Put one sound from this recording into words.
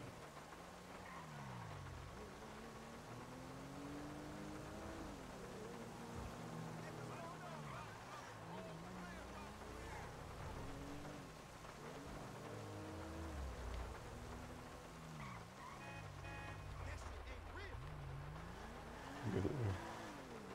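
A car engine revs up and down repeatedly as it speeds along, shifting gears.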